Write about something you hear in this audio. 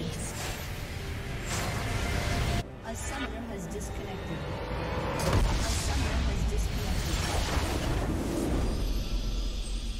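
Magic blasts and impacts crackle and boom in a fierce fight.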